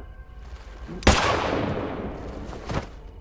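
A gunshot fires loudly and echoes.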